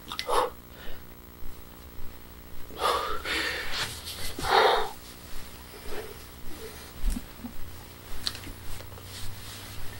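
Fabric rustles as it is handled close by.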